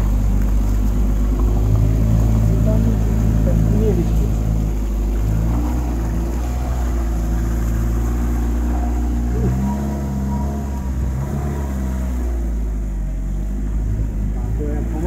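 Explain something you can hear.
An all-terrain vehicle engine rumbles steadily, its pitch rising and falling as it drives.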